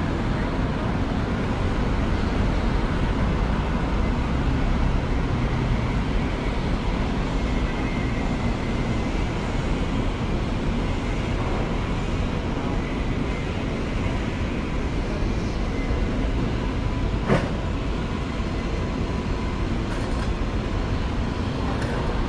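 City traffic rumbles steadily nearby, outdoors.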